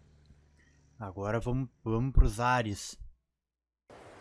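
A young man speaks close to a microphone with animation.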